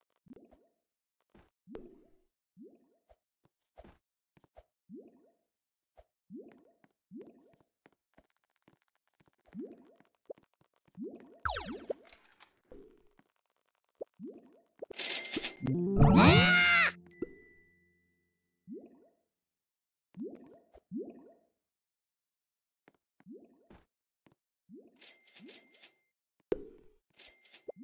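A game character's footsteps patter in short, quick bursts.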